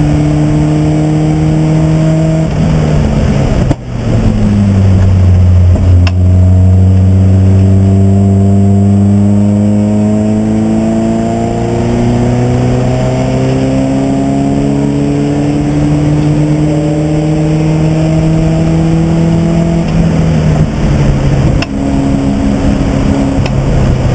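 A race car engine roars loudly from inside the cabin, rising in pitch as it accelerates through the gears.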